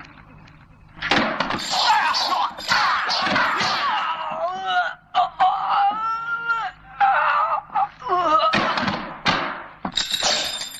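Fists and feet strike bodies with sharp thwacks.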